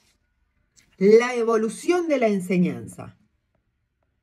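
A woman speaks briefly and calmly close to a microphone.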